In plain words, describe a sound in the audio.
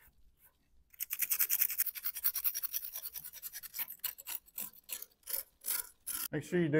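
Grit scrapes and rasps against a hard surface.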